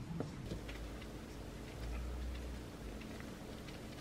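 Dry leaves rustle as they are unwrapped.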